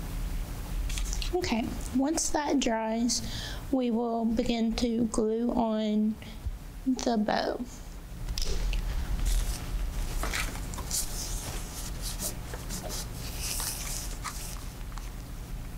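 Plastic mesh rustles and crinkles as hands handle it.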